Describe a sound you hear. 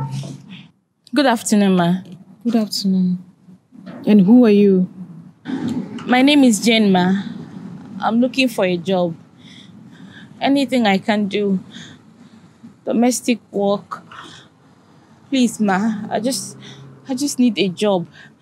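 A young woman speaks in a pleading voice nearby.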